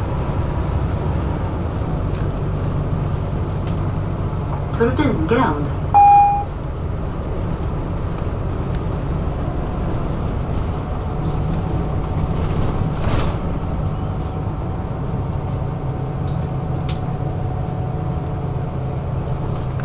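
A vehicle's engine rumbles low and steady from inside the cabin.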